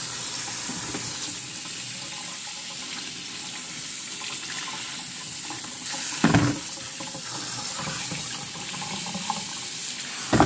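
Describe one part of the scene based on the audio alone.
Hands rub wet sweet potatoes under running water.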